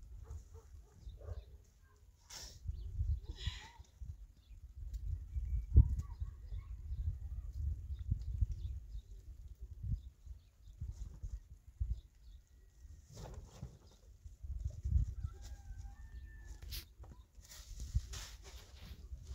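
A plastic sheet rustles and flaps in the wind.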